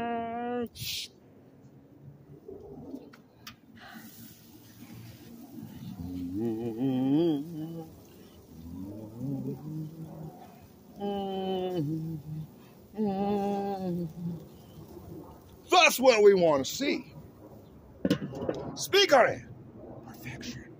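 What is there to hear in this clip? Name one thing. A man talks with animation close to the microphone, outdoors.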